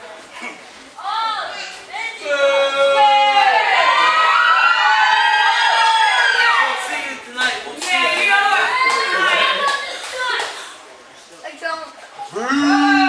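Many people cheer and shout loudly together.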